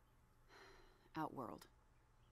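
A woman answers briefly, close by.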